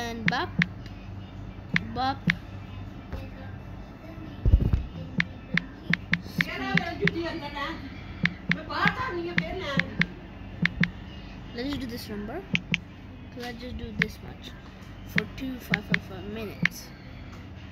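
Keys on a phone's touch keyboard tap and click.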